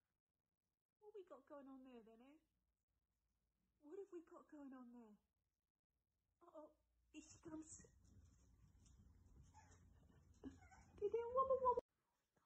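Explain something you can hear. A puppy whimpers in short, high squeals.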